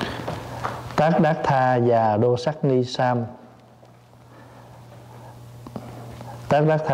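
A middle-aged man reads aloud calmly into a microphone, close by.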